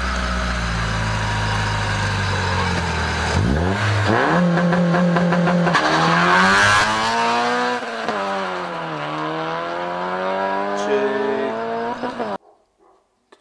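A car engine revs loudly and roars as it speeds away.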